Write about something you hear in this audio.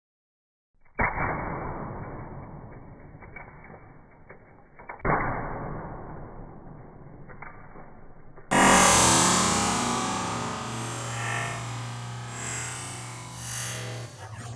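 Plastic toy bricks crash and clatter apart on a carpet.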